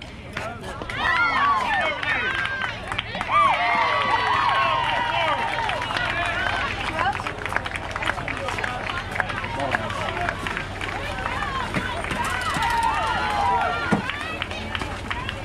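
A crowd of spectators cheers and shouts excitedly in the distance.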